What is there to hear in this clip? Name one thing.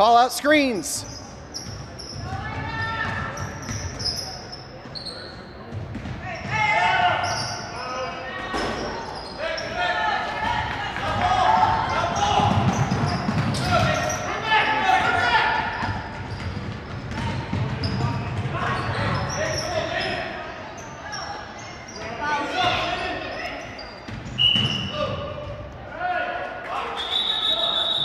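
Sneakers squeak sharply on the gym floor.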